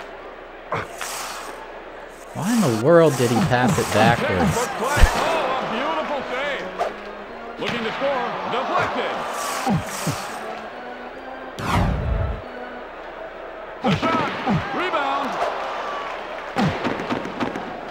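Hockey skates scrape and a puck clacks on ice.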